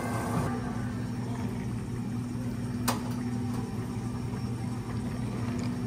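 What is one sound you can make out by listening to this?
Liquid pours into a glass of ice.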